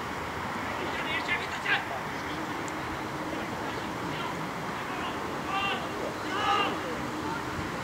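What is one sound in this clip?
Young men shout to each other in the distance across an open field.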